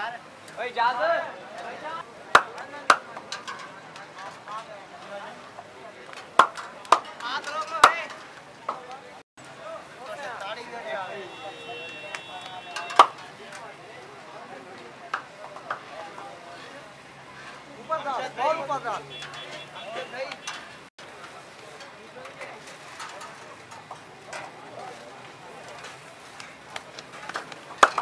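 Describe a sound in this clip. Hot oil sizzles steadily in a wide pan.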